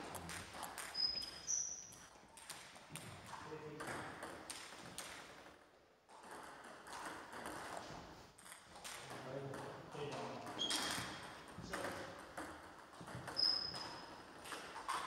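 Sneakers squeak on the floor.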